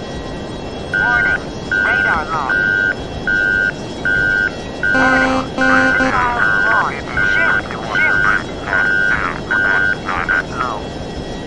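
A cockpit warning tone beeps.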